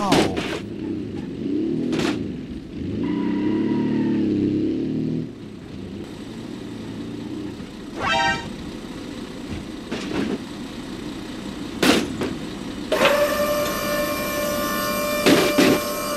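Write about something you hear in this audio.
A small car engine hums and revs.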